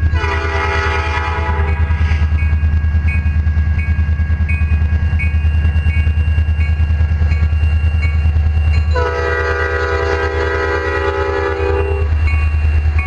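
A locomotive horn blares loudly in long blasts.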